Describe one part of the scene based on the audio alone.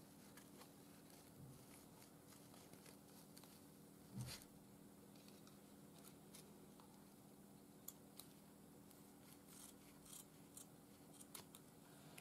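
Paper pieces rustle and crinkle as they are handled.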